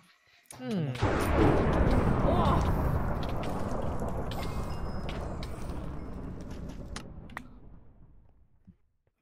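Fire crackles and roars close by, then slowly fades.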